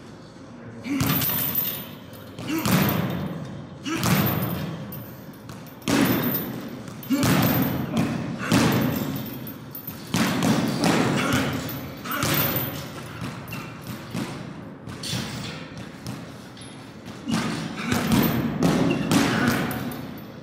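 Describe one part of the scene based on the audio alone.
Gloved fists thump a swinging bag again and again.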